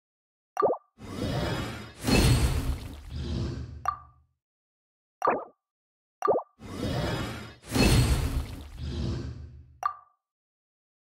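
A magical crafting effect swells with a whoosh and shimmering chimes.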